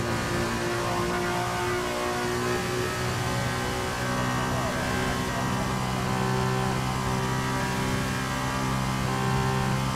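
A racing car engine screams at high revs, rising steadily in pitch as it accelerates.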